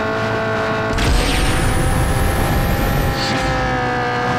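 A loud rushing whoosh bursts out as a car speeds up suddenly.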